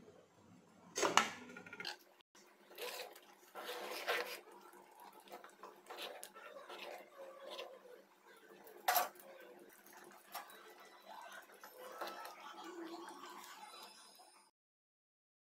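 A metal spoon scrapes and clinks against a cooking pot while stirring.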